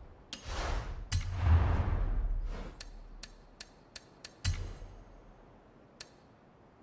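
Short electronic menu clicks tick several times.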